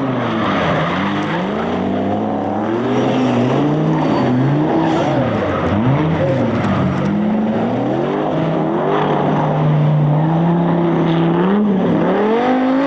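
Car engines rev hard, rising and falling in pitch.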